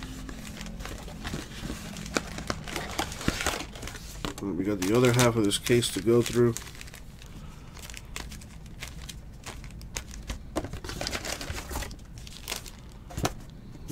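A cardboard box rubs and scrapes as hands turn it.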